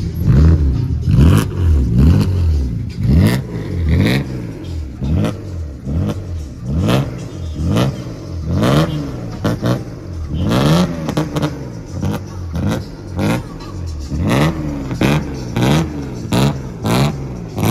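A car engine revs hard again and again in sharp bursts.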